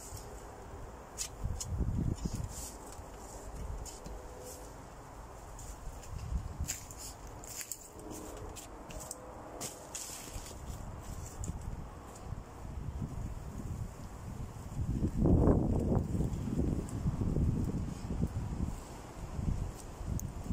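A shovel digs and scrapes into soil outdoors.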